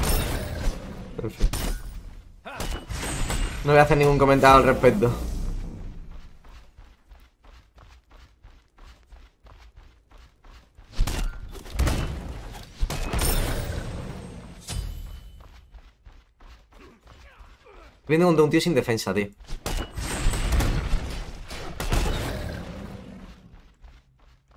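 Game combat effects clash and whoosh in bursts.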